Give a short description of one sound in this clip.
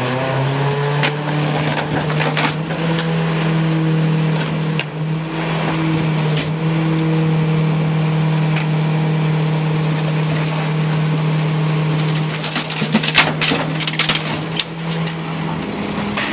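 The hydraulic packer of a rear-loading garbage truck whines.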